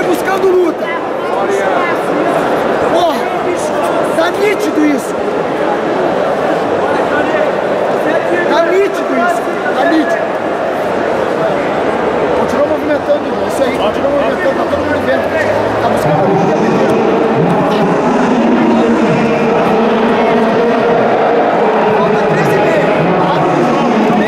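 A large crowd murmurs and shouts in an echoing arena.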